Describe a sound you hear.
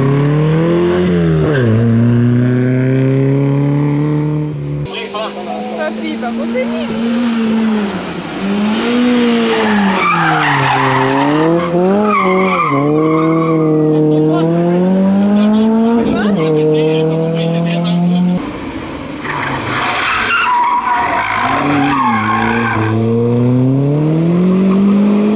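Rally car engines rev hard and change gear, loud and close.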